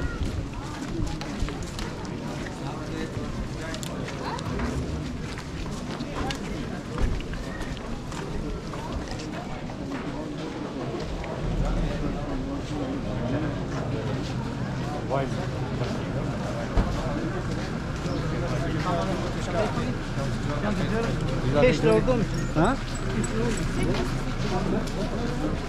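Footsteps shuffle steadily on a paved street.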